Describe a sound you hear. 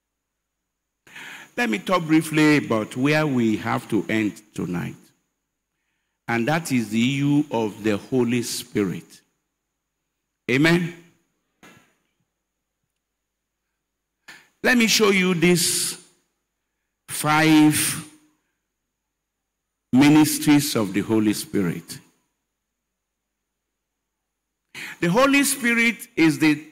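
An elderly man preaches with emphasis into a microphone, in bursts with long pauses.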